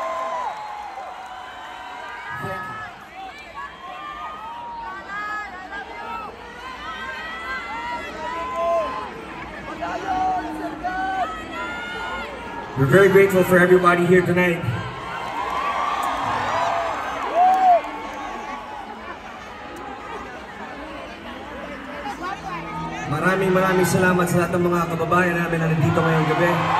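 A man speaks into a microphone over loudspeakers.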